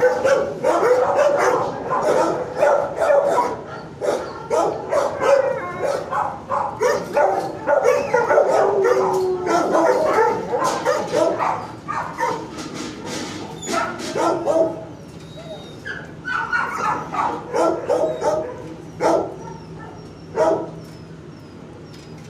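A dog licks and chews at metal cage bars close by.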